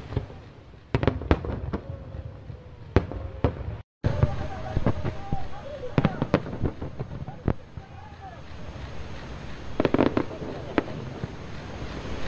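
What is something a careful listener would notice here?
Fireworks burst with loud booms and bangs, echoing across open air.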